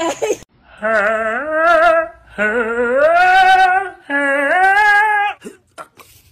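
A cat yowls loudly in long drawn-out cries.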